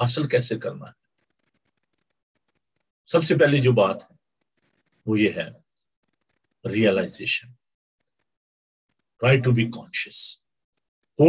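A middle-aged man speaks with emphasis in short bursts through a microphone on an online call.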